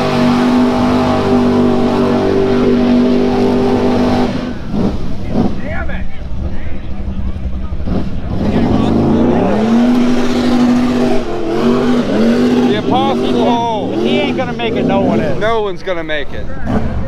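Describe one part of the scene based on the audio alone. A truck engine roars loudly and revs up and down.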